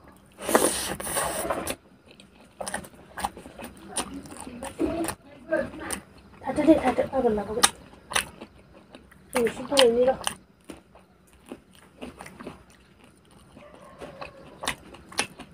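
A man chews food noisily close up.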